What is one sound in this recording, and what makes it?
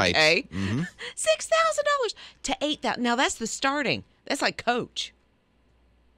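A woman speaks with animation into a close microphone.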